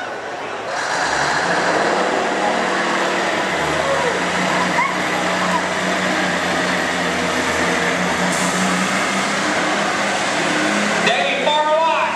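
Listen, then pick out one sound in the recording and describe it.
A diesel truck engine roars loudly.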